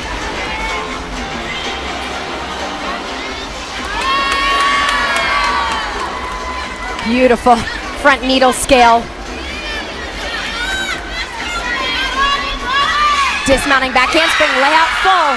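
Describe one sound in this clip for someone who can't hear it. A crowd cheers and whistles in a large echoing hall.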